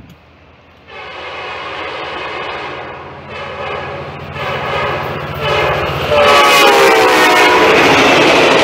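A train horn blows loudly in long blasts as a train approaches.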